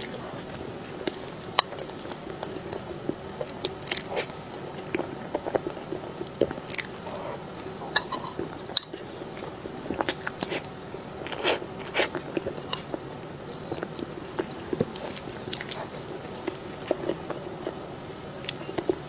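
A young woman eats soft cake with close, wet mouth sounds.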